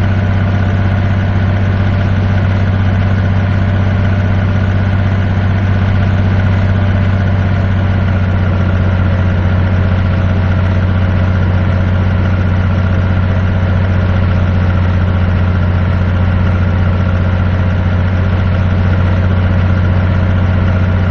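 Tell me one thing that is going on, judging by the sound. A truck engine hums steadily and low.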